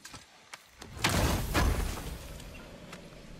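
A heavy chest creaks open with a burst of crackling sparks.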